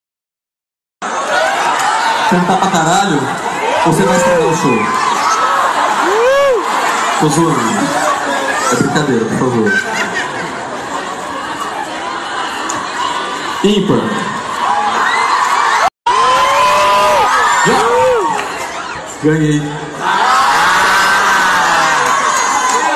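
A crowd sings along loudly.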